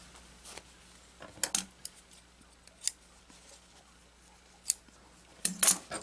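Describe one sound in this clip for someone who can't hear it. Scissors snip through cloth.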